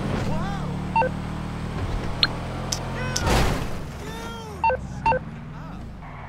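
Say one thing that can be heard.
A mobile phone beeps several times.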